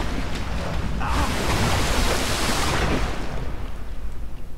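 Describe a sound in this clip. A deep rushing blast roars loudly and then fades.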